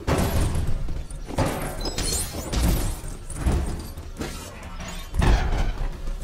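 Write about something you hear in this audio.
A small explosion bangs and pieces clatter.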